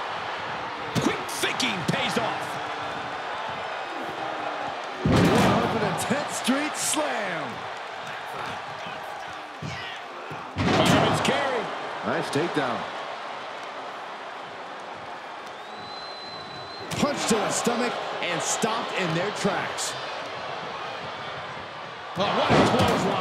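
Blows land with sharp smacks.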